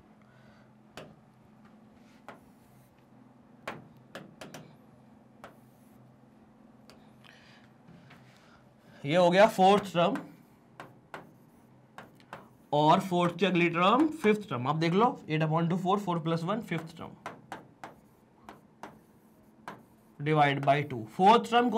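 A marker taps and scrapes on a board.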